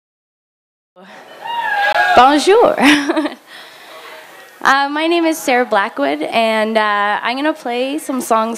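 A young woman sings into a microphone on stage.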